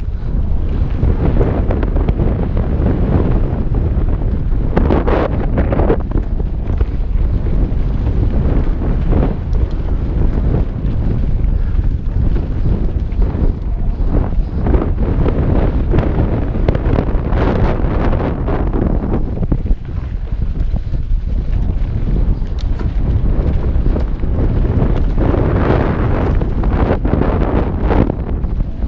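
Bicycle tyres rumble and crunch over a rough dirt trail.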